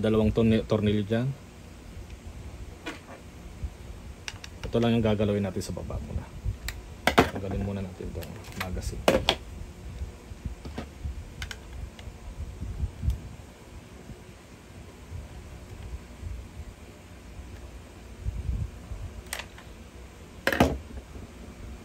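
Hard plastic parts click and knock together.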